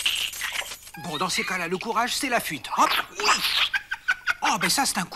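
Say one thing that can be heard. A duckling peeps rapidly and shrilly.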